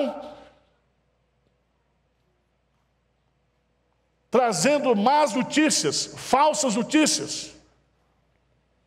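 A middle-aged man speaks with emphasis through a microphone.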